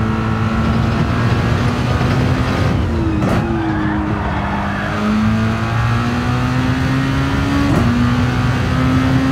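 A racing car engine roars steadily, dropping in pitch at a gear change and then slowly rising again.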